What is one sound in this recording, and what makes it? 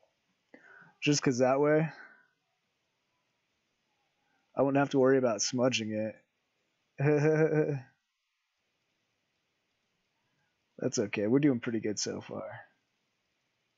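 A man talks calmly into a microphone, in short bursts.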